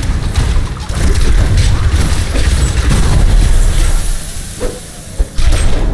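Heavy blows thud against enemies.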